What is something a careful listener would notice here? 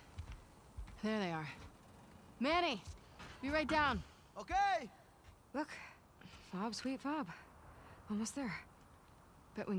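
A young woman talks calmly.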